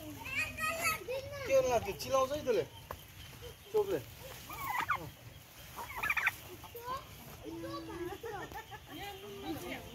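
A turkey gobbles and calls nearby.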